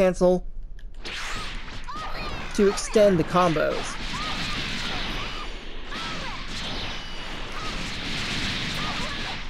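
Punches and kicks land with sharp thuds in rapid succession.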